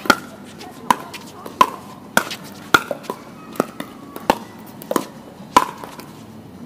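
A plastic ball bounces on a hard court.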